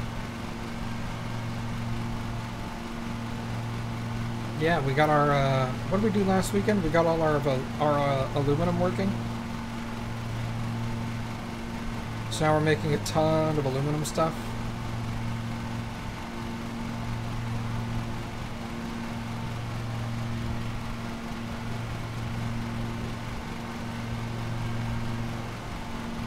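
A lawn mower engine hums steadily.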